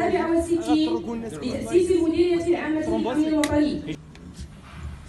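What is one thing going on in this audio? A woman speaks formally into a microphone over a loudspeaker.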